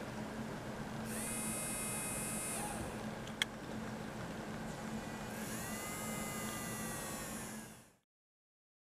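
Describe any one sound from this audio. A small electric motor whirs with a high, thin whine.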